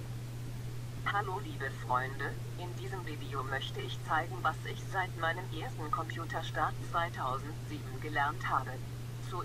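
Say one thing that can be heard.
A middle-aged woman speaks calmly and close to a microphone.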